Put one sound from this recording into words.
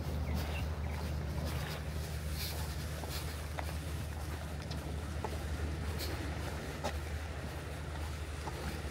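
Footsteps tread on a paved path.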